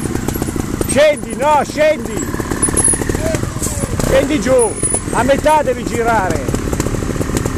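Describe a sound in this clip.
Motorcycle engines rev up sharply in short bursts.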